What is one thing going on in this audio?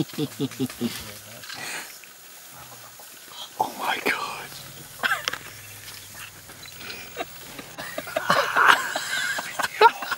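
A baby elephant trumpets shrilly.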